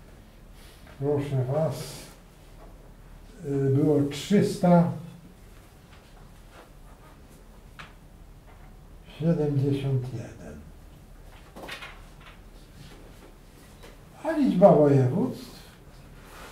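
A man speaks calmly in short phrases, with pauses.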